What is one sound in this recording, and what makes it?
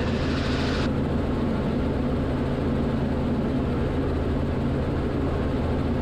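A helicopter's engine and rotor drone loudly and steadily from inside the cabin.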